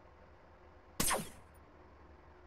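A gun fires a single loud blast.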